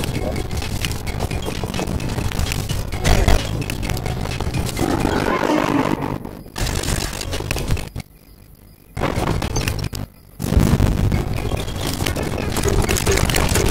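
Video game spell shots crackle and burst rapidly during a battle.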